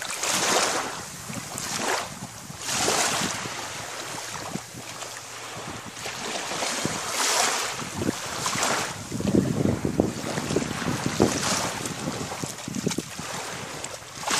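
A dog splashes through shallow water.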